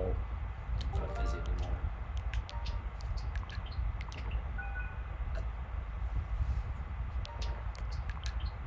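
Short electronic menu tones beep.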